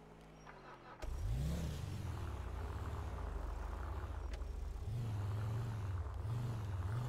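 A car engine starts and runs with a low steady rumble.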